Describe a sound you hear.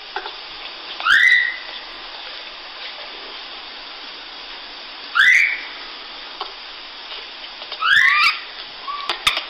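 A baby monkey gives short, shrill squeals.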